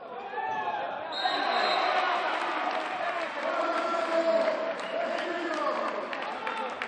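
A crowd of spectators cheers and shouts in an echoing hall.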